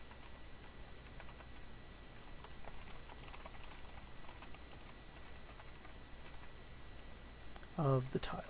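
Keys on a keyboard click softly as someone types.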